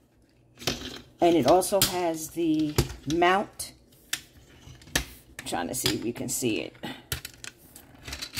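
Metal tripod parts click and rattle as hands handle them.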